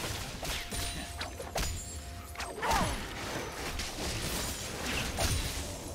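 Game attacks hit with sharp impacts.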